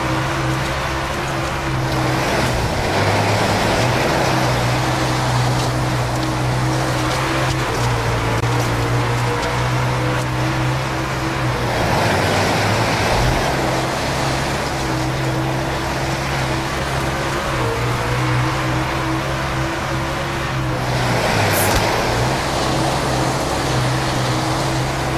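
Tyres skid and rumble over a dirt track.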